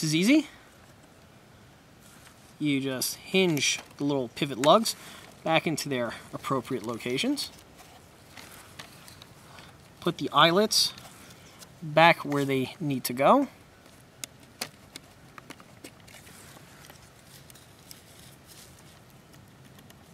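Small plastic parts click and snap as they are handled.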